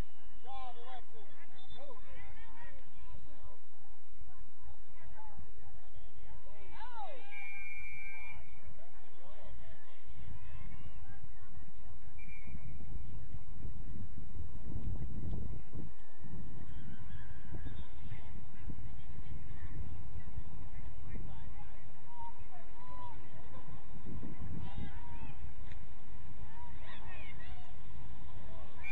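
Young women shout and call to each other in the distance across an open field.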